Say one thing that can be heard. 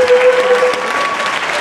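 A young girl sings a held note into a microphone in a large hall.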